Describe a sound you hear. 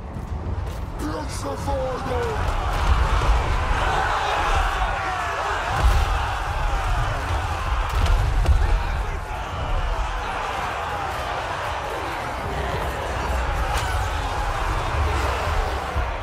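A battle roars with a dense crowd of clashing fighters and a deep rumble.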